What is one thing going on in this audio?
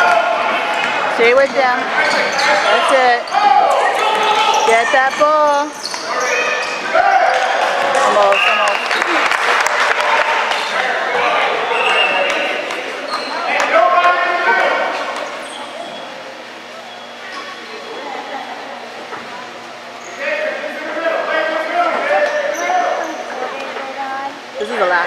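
Spectators close by shout and cheer in a large echoing hall.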